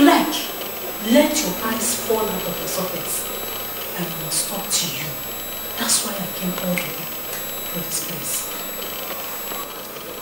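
A middle-aged woman speaks with animation nearby.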